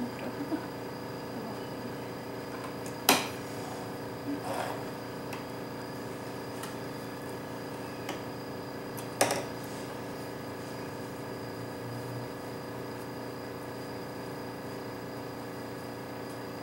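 A sewing machine hums steadily as it stitches.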